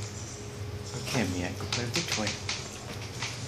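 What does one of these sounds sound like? A small dog snorts and snuffles close by.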